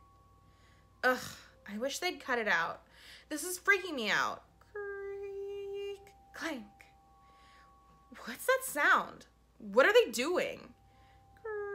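A young woman speaks expressively into a close microphone, with short pauses.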